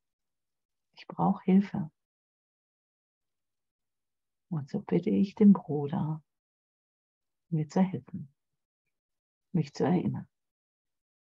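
A middle-aged woman speaks calmly in short phrases with pauses, heard through an online call.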